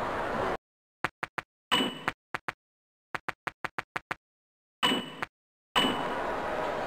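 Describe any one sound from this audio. Short menu beeps click in quick succession.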